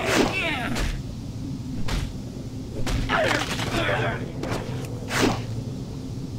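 Weapon blows strike with sharp impacts.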